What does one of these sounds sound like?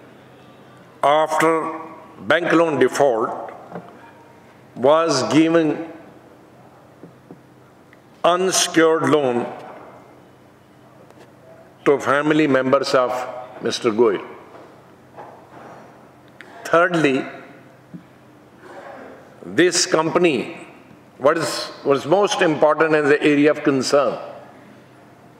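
An elderly man speaks slowly and deliberately into a microphone, pausing between phrases.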